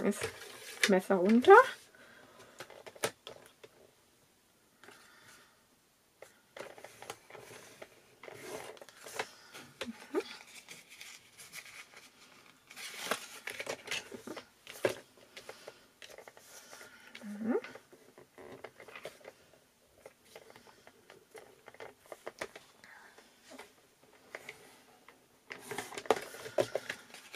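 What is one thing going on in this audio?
Paper slides and rustles on a hard surface.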